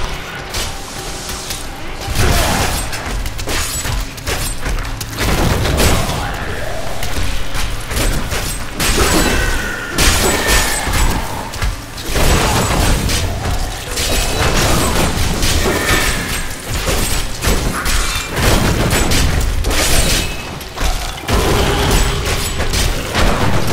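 Magic blasts and weapon strikes crash and boom again and again in a fight.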